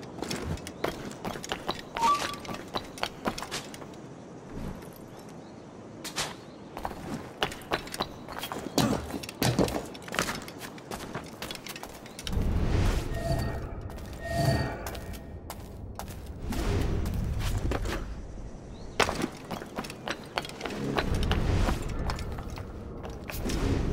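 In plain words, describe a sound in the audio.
Footsteps clatter quickly across roof tiles.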